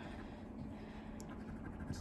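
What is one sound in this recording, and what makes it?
A coin scratches across a card.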